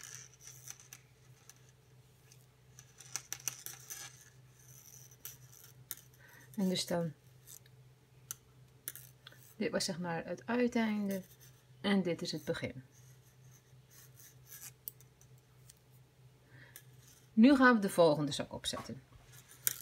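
Metal knitting needles click and tap softly against each other.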